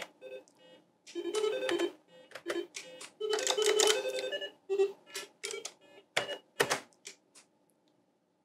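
Retro computer game music and sound effects play in short bursts of bright electronic tones.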